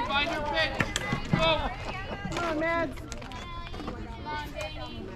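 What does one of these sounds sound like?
Young women shout and cheer loudly nearby.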